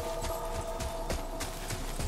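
Fire crackles in a brazier.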